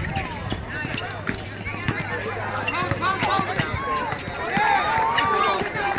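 A basketball bounces on an asphalt court.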